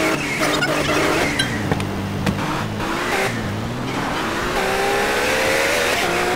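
A car engine revs and hums, rising and falling in pitch.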